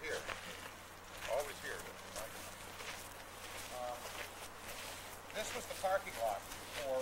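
Footsteps crunch on a gravel road.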